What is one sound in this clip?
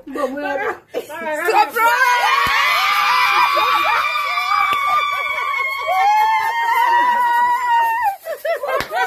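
Young women sing loudly together close by.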